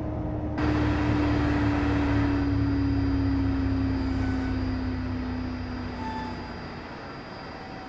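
A train engine rumbles and hums steadily, then quietens.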